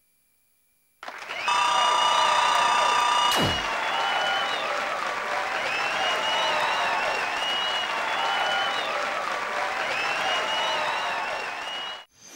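Lively electronic music with a whistling melody plays.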